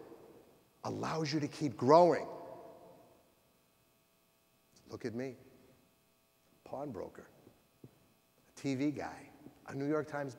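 A middle-aged man speaks with animation through a microphone in a large echoing hall, pausing between phrases.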